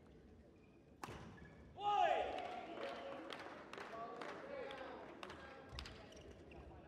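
A racket sharply strikes a shuttlecock.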